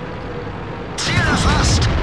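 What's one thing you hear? A tank cannon fires with a loud blast.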